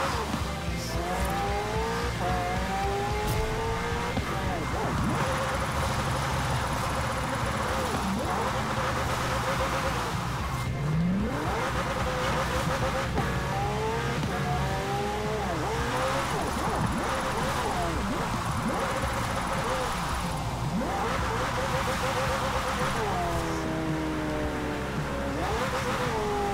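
A racing car engine revs up and down at high speed.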